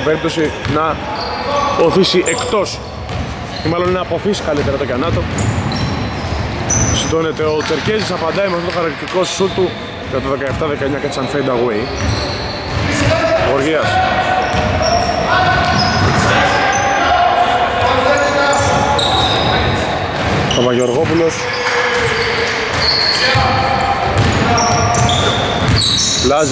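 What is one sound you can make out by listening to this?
Sneakers squeak sharply on a hard court in a large echoing hall.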